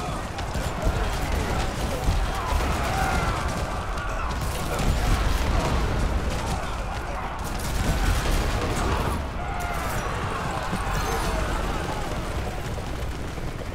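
Gunfire and explosions crackle in a game battle.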